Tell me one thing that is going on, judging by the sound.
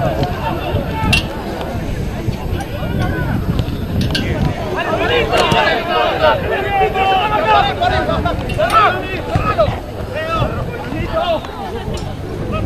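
Men shout and call out loudly across an open field.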